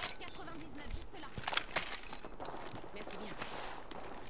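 A gun clicks and clacks as it is swapped.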